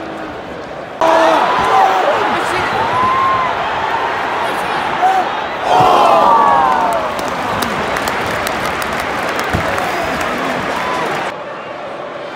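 Fans nearby shout and cheer loudly.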